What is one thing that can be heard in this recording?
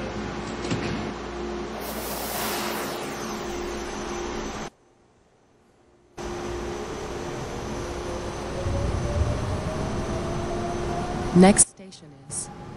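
A subway train rumbles and hums steadily.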